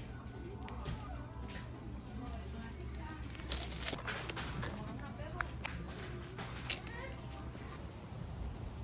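Plastic wrapping crinkles as a notebook is handled.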